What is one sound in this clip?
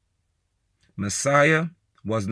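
A man speaks with animation close to the microphone.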